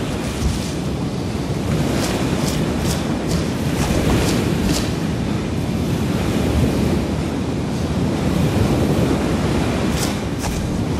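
Dry grass rustles as a soldier crawls through it.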